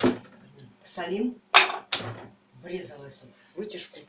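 A metal lid clinks as it is set down on a counter.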